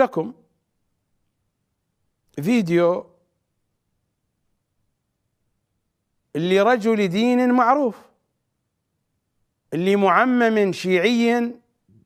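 A middle-aged man speaks expressively into a microphone, in short phrases with pauses.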